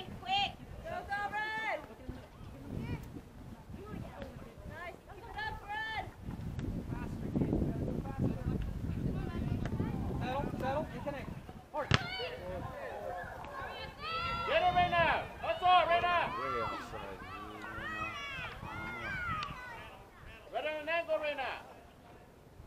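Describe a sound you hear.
Young women shout and call out across an open field outdoors.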